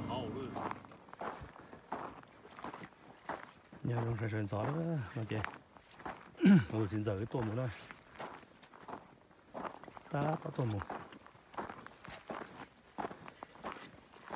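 Footsteps crunch on a dirt trail through dry brush.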